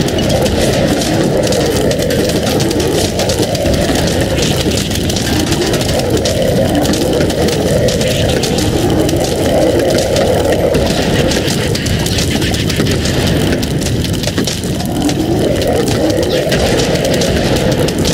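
Rapid popping and thudding shots from a game fire without pause.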